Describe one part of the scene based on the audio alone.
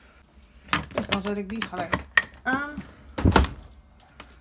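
A dishwasher door clicks and thuds shut.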